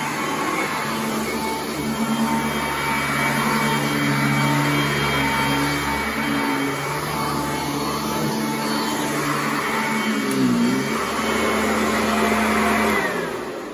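A vacuum cleaner hums loudly and steadily as it runs over carpet.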